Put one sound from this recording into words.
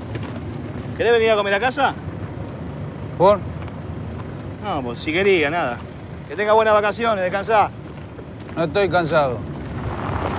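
A man speaks loudly and with animation nearby.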